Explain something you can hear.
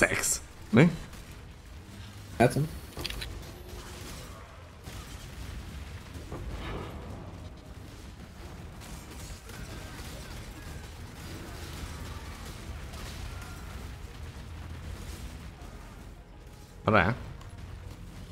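Game spell effects whoosh and boom in loud bursts.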